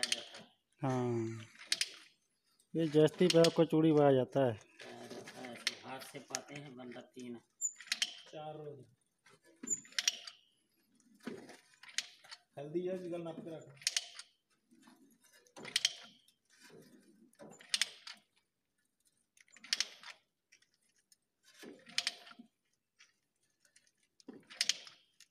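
A ratchet pipe threader clicks with each stroke on a metal pipe.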